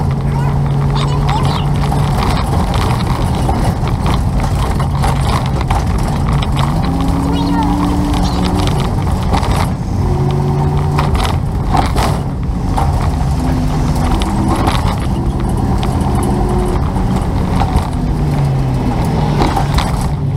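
A vehicle engine hums steadily as tyres roll over the road.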